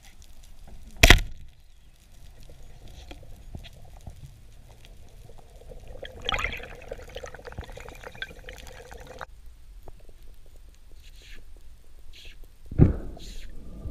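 A speargun fires underwater with a sharp snap.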